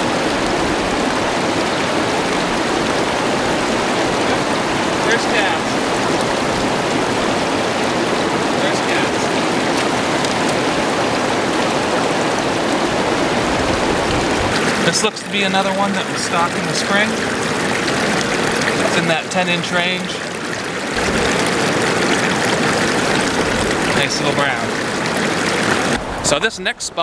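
River rapids rush and roar steadily close by.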